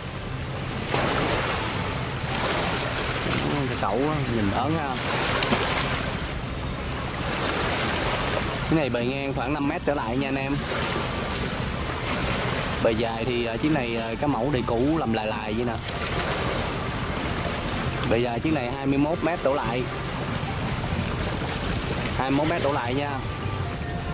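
Wind blows across open water.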